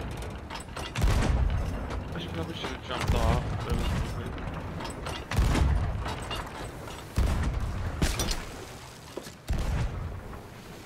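A cannon fires with a deep boom.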